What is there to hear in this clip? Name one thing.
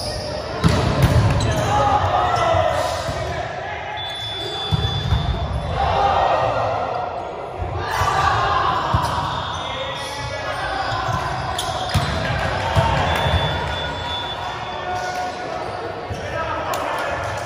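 Young men and women chatter and call out in a large echoing gym.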